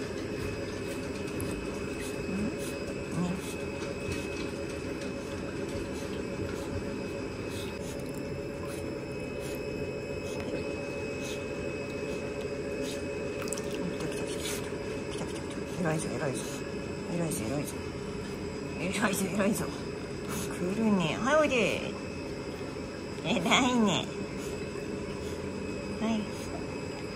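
Water sloshes and splashes as a dog paddles.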